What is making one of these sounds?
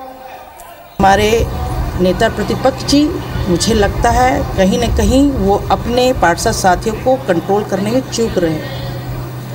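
A woman speaks calmly into microphones up close.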